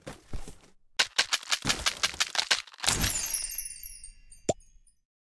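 A sparkling magical chime rings out.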